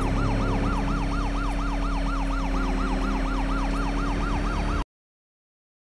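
A police siren wails rapidly up and down.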